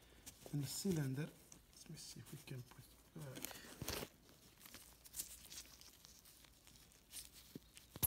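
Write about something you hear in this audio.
Plastic sheeting crinkles and rustles close by.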